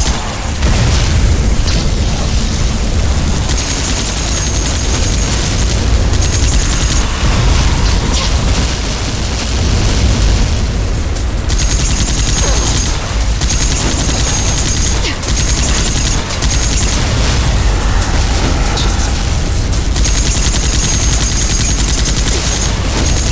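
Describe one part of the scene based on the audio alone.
A rapid-fire gun rattles loudly in long bursts.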